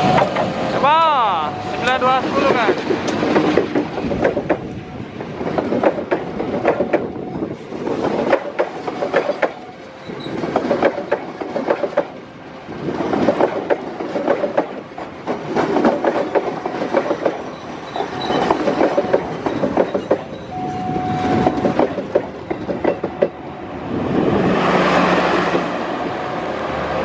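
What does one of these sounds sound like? Train wheels clatter rhythmically over rail joints as carriages pass close by.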